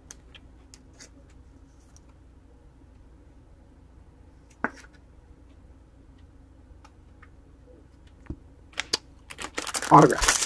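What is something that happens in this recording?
Plastic card packs crinkle and rustle as hands handle them.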